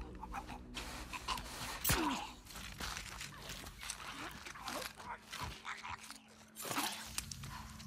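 Bodies scuffle and thrash in a struggle.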